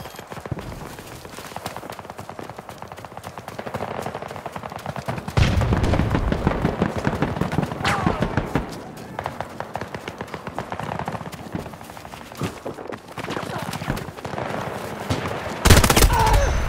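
Footsteps crunch quickly over snow.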